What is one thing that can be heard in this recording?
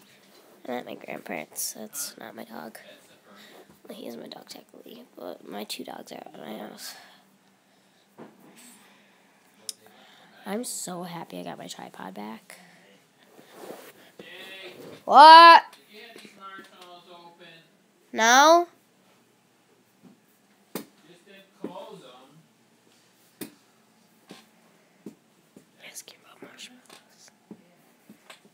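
A young girl talks close to a microphone.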